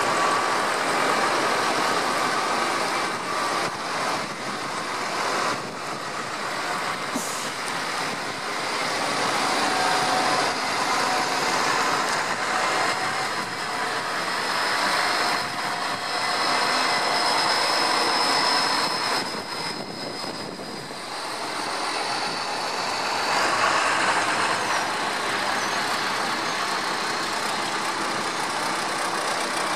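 Large tyres splash and crunch on a wet track.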